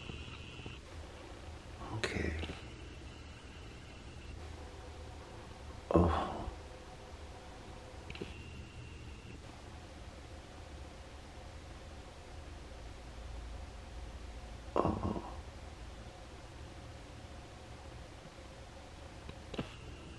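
Kittens purr softly and steadily close by.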